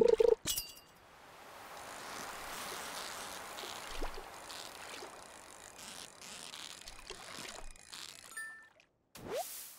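A fishing reel whirs steadily.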